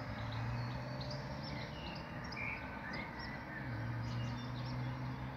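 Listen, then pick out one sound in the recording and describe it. Wind rustles the leaves of nearby trees.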